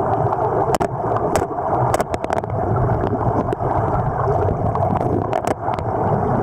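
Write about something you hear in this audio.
River water murmurs and rushes, heard underwater.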